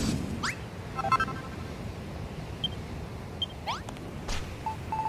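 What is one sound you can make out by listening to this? Short electronic blips chime.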